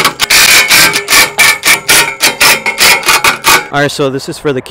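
A power drill whirs, driving a screw into metal.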